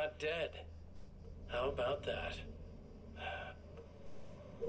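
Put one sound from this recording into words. A man speaks calmly through a television loudspeaker.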